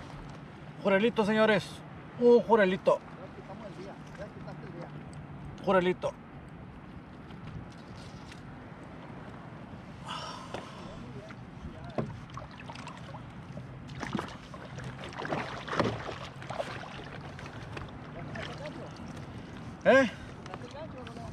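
Small waves lap against a kayak.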